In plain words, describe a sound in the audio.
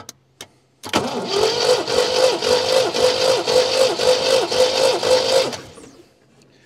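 A car engine's starter motor cranks rapidly in a steady, chugging rhythm.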